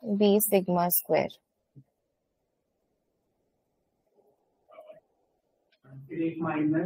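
A young woman speaks calmly into a microphone, with pauses.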